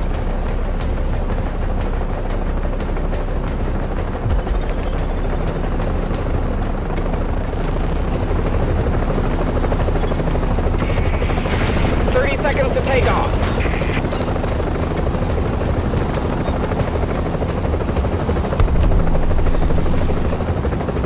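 A helicopter's rotor drones steadily with a low thudding rumble.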